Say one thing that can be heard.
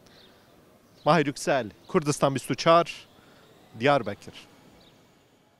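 A middle-aged man speaks calmly and clearly into a microphone, close by.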